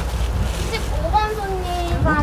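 A young woman calls out nearby.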